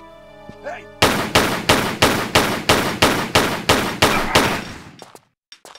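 Pistols fire a rapid burst of loud shots.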